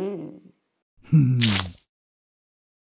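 A cartoon cat chomps noisily on a cake.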